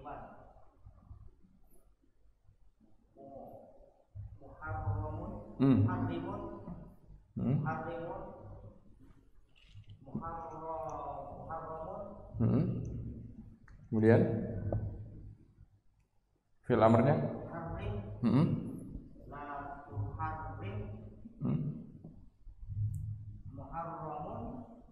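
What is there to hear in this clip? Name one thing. A man speaks calmly and clearly into a close microphone, explaining at length.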